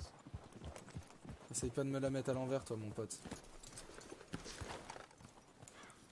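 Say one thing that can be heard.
Horse hooves clop slowly over rocky ground.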